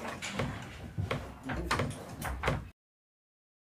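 Horse hooves clop and scrape on a hard floor.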